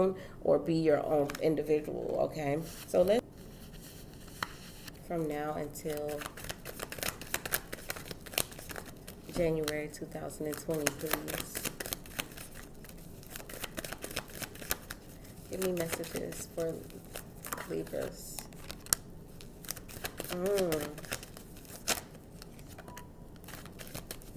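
Playing cards slide and tap softly onto a table.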